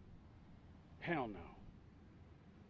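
A man speaks a short word in a low voice.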